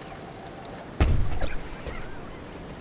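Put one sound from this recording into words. A heavy stone block drops with a deep thud.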